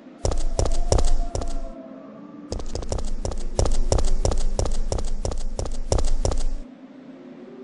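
Footsteps clack quickly on a hard street.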